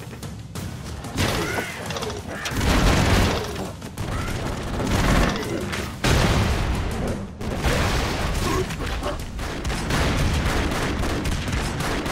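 Gunfire rattles rapidly in a video game.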